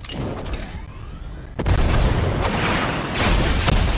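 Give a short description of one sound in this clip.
A gun fires in a burst of shots.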